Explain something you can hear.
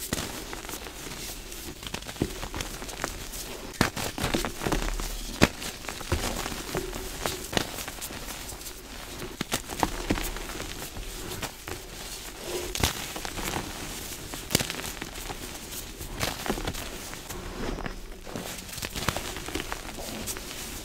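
Hands crumble soft chalk close up, with dry crunching and rustling.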